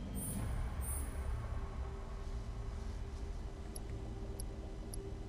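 A low, steady ambient drone hums throughout.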